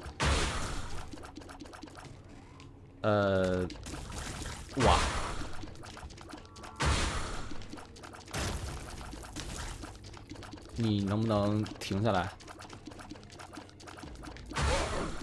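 Video game sound effects burst and splatter in quick, repeated blasts.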